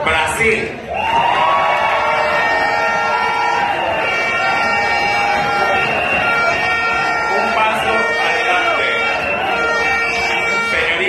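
Loud pop music with a singing voice plays over a loudspeaker in a large hall.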